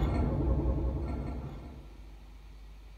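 A resonant electronic instrument sounds loudly and fades away.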